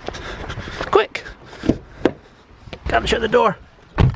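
A car door handle clicks.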